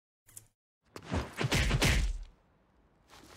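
A heavy punch lands with a thud.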